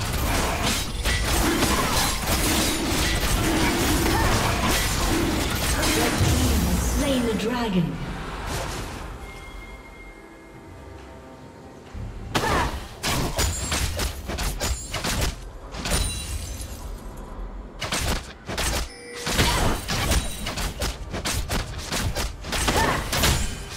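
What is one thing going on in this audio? Fantasy battle effects crackle, whoosh and boom in quick bursts.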